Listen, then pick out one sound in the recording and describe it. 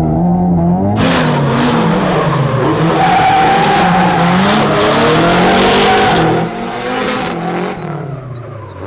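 Tyres screech and squeal on asphalt.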